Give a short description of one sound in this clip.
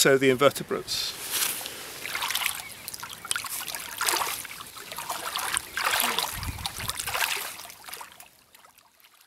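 Water splashes and swirls around a hand dipped into a stream.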